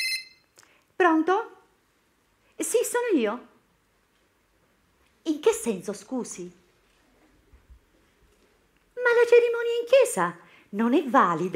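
A woman speaks animatedly into a phone.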